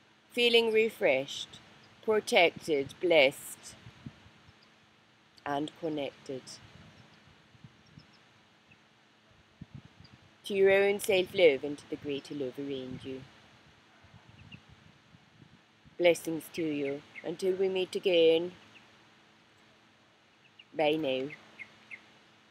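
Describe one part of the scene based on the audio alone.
A middle-aged woman speaks calmly and closely into a microphone, with pauses between phrases.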